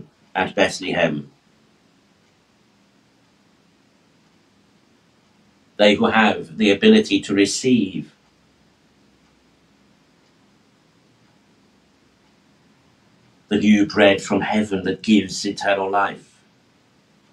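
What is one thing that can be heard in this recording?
A middle-aged man speaks calmly in short phrases.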